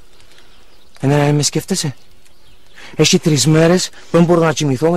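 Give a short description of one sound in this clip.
A young man speaks quietly and earnestly, close by.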